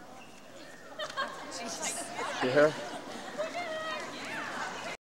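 A woman talks cheerfully close by.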